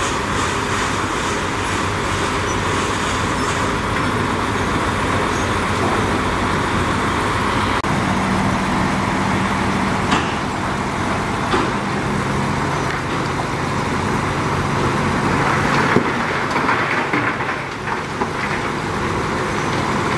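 Rocks tumble and rattle out of a dump truck bed.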